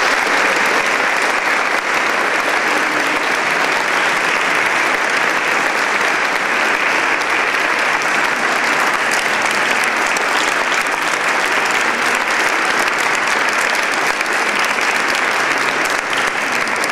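An audience applauds steadily in a large echoing hall.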